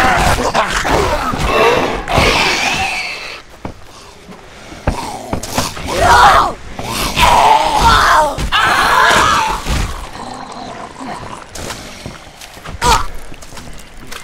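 Heavy blows thud and squelch into flesh.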